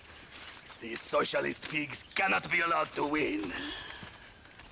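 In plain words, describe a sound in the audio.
A man speaks firmly and with scorn, close by.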